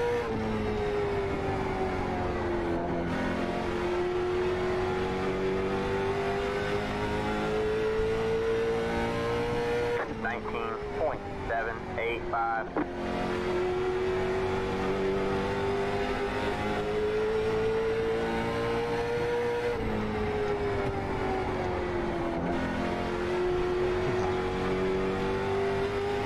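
A race car engine drones loudly, rising and falling in pitch as it shifts and accelerates.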